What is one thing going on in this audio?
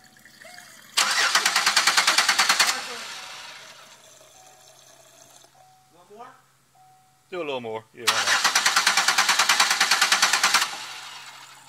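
Liquid spurts in rapid pulses from a hand pump into a glass jar.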